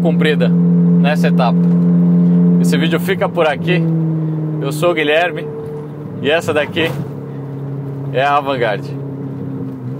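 A car engine revs in short sharp bursts.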